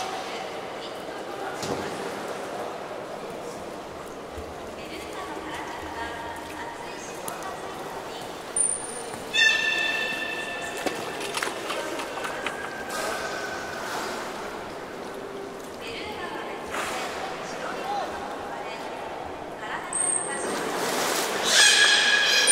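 Water laps and splashes in a pool.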